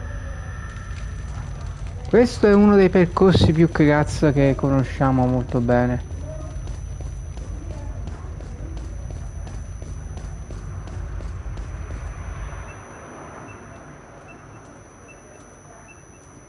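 Footsteps crunch on loose ground.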